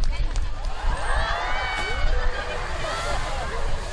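A large orca splashes down hard into the water.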